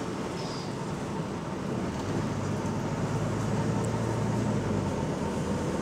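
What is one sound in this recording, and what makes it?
A vehicle engine rumbles steadily from inside.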